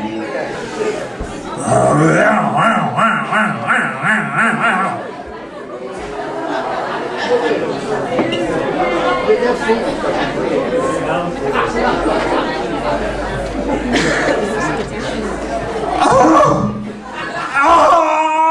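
A man speaks loudly on a stage in a large hall.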